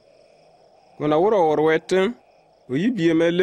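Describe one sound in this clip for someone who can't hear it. A man speaks loudly and clearly nearby.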